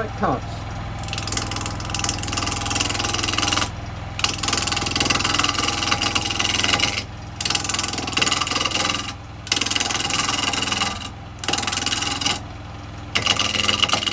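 A chisel scrapes and hisses against spinning wood in bursts.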